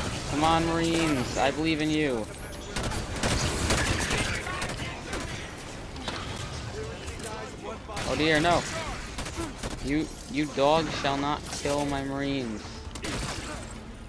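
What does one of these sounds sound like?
Rapid gunfire rattles and bursts loudly.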